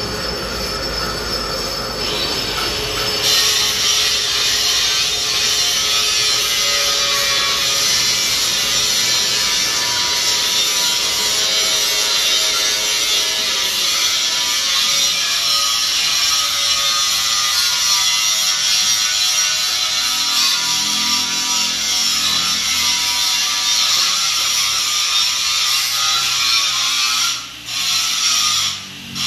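A metal lathe whirs steadily as it cuts metal.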